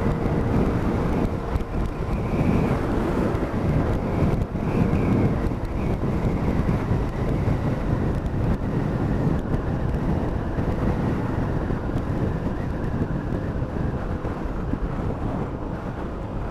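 A motorcycle engine hums steadily as the bike rides along a road.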